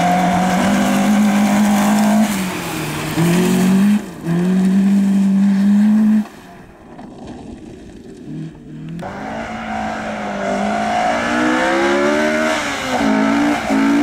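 Tyres crunch and spray on a gravel road.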